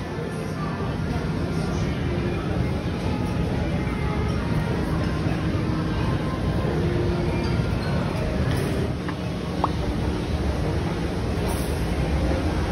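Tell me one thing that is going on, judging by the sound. A crowd murmurs in a large, echoing hall.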